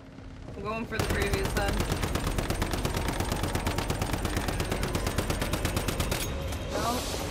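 A rifle fires in rapid automatic bursts.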